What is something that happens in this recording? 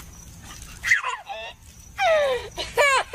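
A young child laughs loudly and happily close by.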